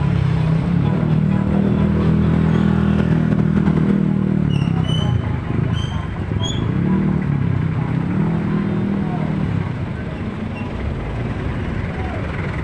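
Engines rumble steadily close by in street traffic.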